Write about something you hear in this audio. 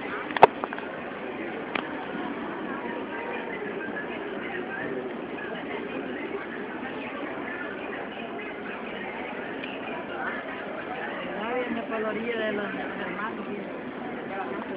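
A large outdoor crowd of men and women murmurs and chatters steadily.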